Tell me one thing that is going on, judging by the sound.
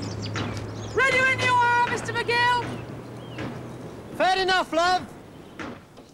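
A woman calls out loudly in a drawn-out, sing-song voice outdoors.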